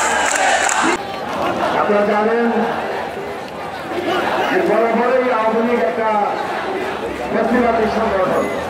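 A crowd of men chants slogans together.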